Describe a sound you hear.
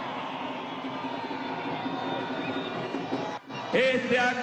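A large crowd cheers and murmurs outdoors.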